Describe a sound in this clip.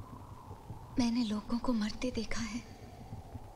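A young woman speaks anxiously, close by.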